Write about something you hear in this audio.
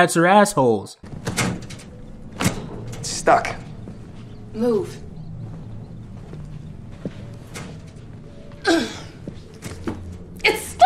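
A young woman cries out in distress close by.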